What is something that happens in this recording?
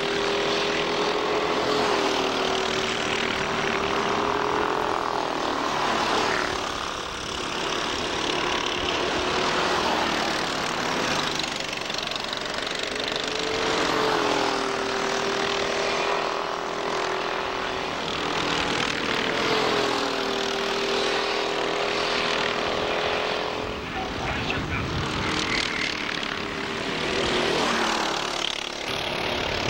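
Small kart engines buzz and whine loudly as they race past, rising and falling in pitch.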